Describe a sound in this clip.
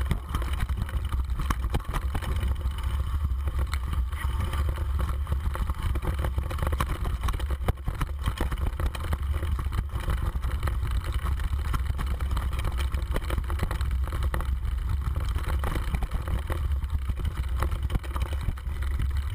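Wind buffets the microphone in a steady low rumble.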